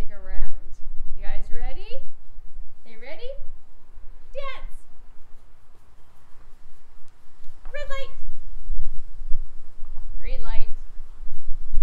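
A woman calls out short phrases brightly and clearly, close by, outdoors.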